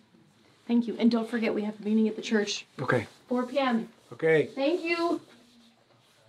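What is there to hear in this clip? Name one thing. A man speaks in a friendly, lively way close by.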